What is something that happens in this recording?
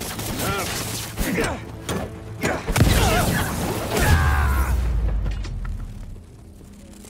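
Punches and kicks land with heavy thuds and cracks.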